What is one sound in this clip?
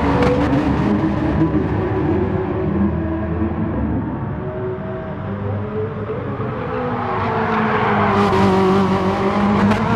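Racing car engines roar loudly, rising and falling in pitch as they shift gears.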